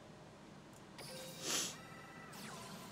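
A bright electronic swoosh rings out as a card flares.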